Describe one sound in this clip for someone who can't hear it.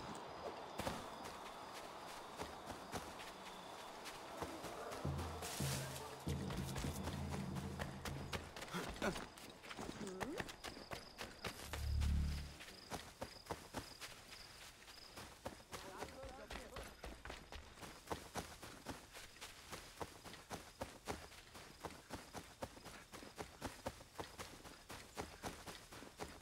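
Footsteps run quickly through grass and over hard ground.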